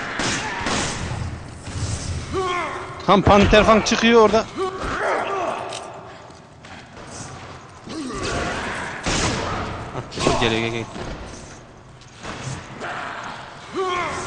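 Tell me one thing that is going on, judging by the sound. A creature growls and groans.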